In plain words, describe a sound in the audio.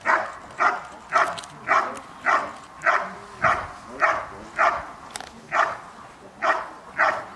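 A dog barks loudly in a steady rhythm outdoors.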